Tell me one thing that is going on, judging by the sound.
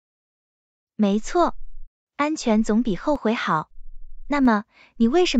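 A young woman speaks clearly and with animation, heard through a microphone.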